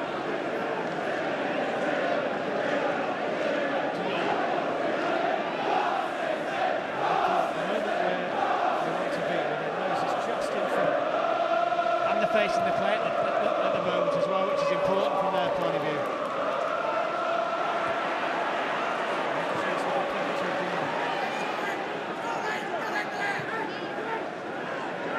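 A large crowd sings and chants loudly in a stadium.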